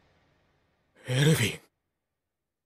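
A young man calls out in a questioning tone.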